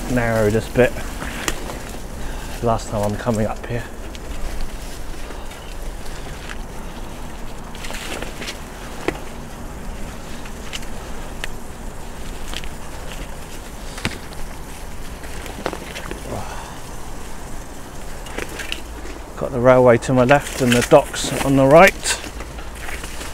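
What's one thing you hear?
Bicycle tyres roll over a grassy path strewn with leaves.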